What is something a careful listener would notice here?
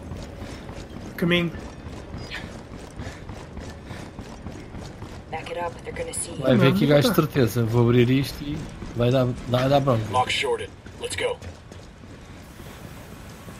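Heavy boots run on hard ground.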